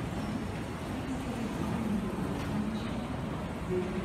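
An escalator hums and rattles steadily up close.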